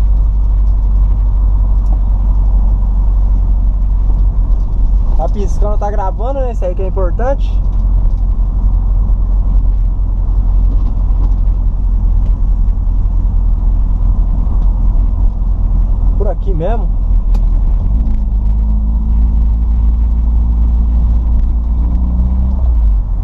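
A car engine roars steadily up close.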